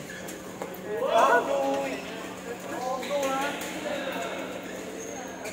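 Young men call out and talk across the court.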